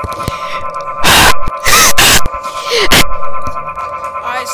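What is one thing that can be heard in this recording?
A young woman shouts loudly into a microphone.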